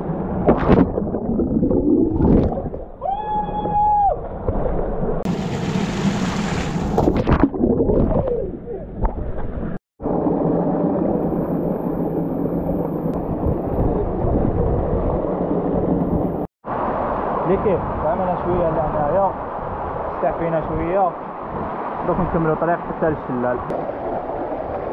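Water rushes and gurgles over rocks.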